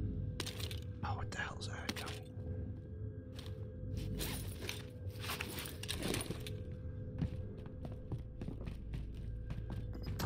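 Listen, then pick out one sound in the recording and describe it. Footsteps thud on a wooden floor and stairs.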